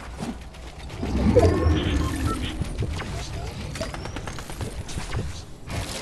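A potion is gulped down with a swelling whoosh.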